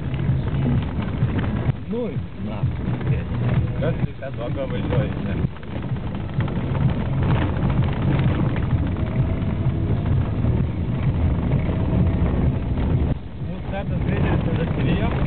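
Tyres rumble and crunch over a gravel road.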